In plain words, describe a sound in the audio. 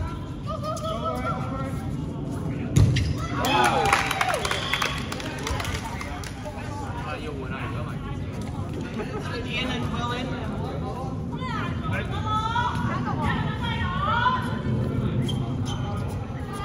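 Balls bounce and thud on a hard floor in a large echoing hall.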